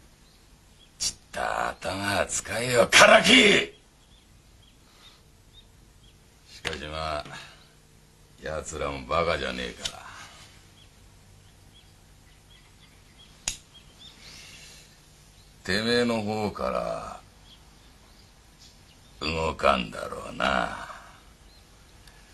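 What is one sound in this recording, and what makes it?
An older man speaks angrily through clenched teeth, close by.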